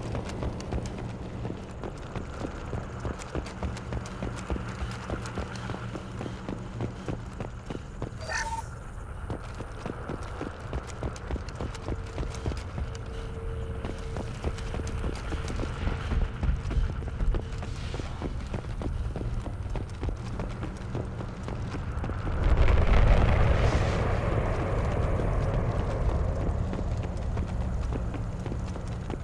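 Heavy armoured footsteps thud quickly on metal floors.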